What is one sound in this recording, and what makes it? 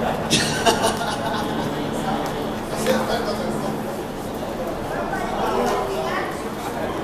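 Men talk nearby on a stage.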